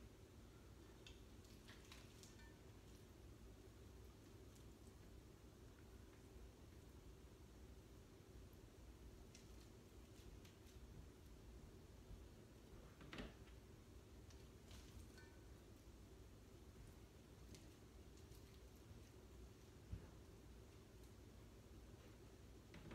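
Hands squish and knead a sticky mixture in a bowl.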